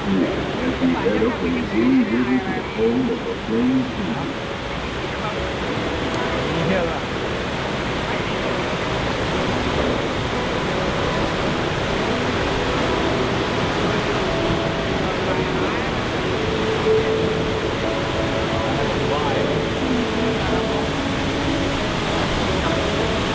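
Water splashes and rushes over rocks nearby.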